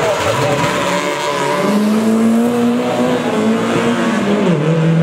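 A small car engine revs loudly and drones as the car speeds away.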